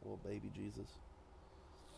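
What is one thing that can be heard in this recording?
A man speaks briefly into a close microphone.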